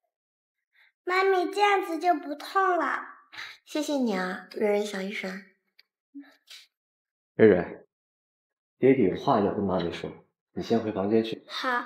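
A young woman speaks gently, close by.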